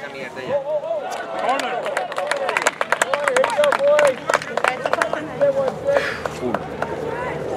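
Spectators cheer and shout from a distance.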